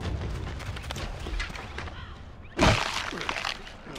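A knife tears wetly into an animal carcass.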